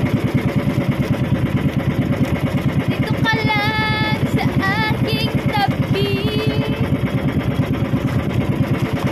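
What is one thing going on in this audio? A boat engine chugs steadily and fast.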